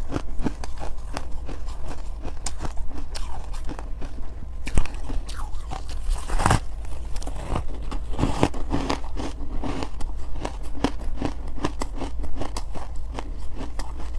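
Plastic gloves crinkle and rustle close by.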